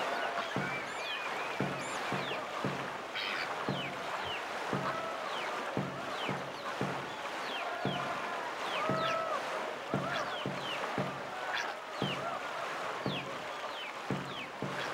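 Water rushes steadily past a boat.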